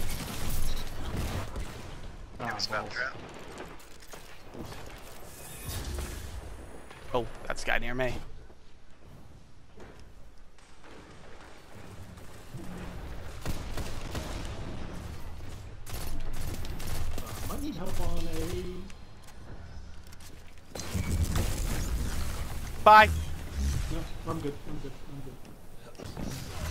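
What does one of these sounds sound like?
Gunfire and explosions crackle and boom in a video game.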